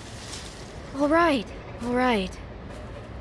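A young woman speaks hesitantly.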